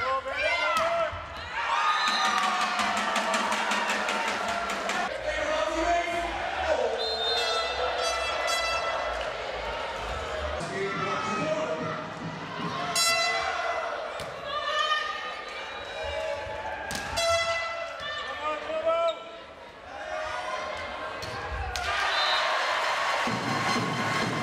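A large crowd chants and sings in a large echoing sports hall.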